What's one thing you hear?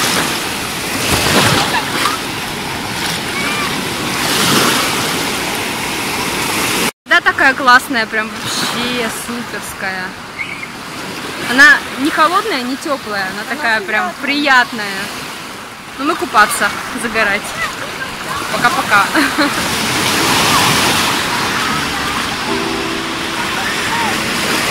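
Waves wash and break in the shallows.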